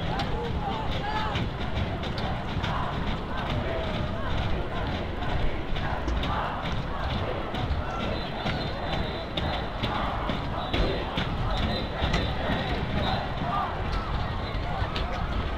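A crowd of people shouts and chatters outdoors.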